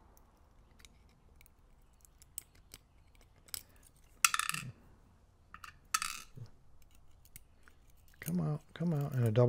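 A metal pick clicks and scrapes inside a lock.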